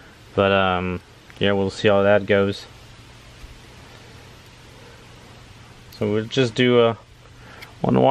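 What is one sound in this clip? Plastic connectors click and wires rustle as they are handled.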